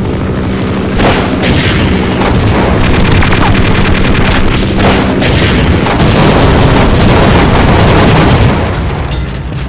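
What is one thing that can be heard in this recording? Rockets explode with loud booms.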